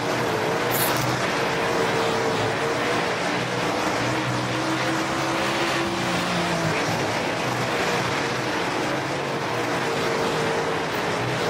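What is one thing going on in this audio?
A race car engine roars loudly and steadily, its pitch shifting as it changes speed.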